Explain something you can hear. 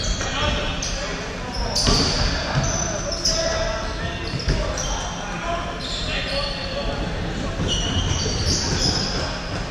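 Young men call out to each other from across an echoing hall.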